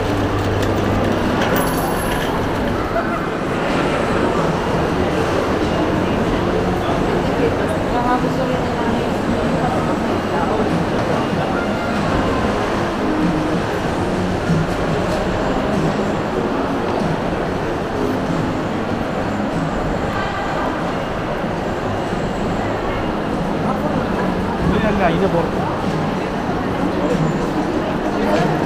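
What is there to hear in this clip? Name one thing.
A crowd of people chatters in a large, echoing indoor space.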